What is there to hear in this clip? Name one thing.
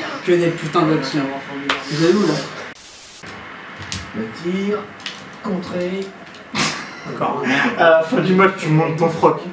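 Young men talk excitedly close by.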